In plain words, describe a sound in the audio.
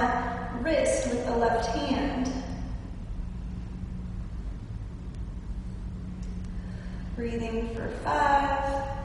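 A young woman speaks calmly and clearly close by.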